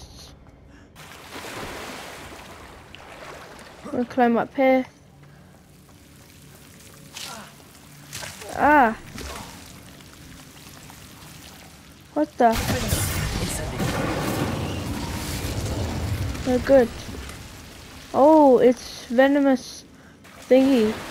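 Water splashes as a swimmer strokes through it.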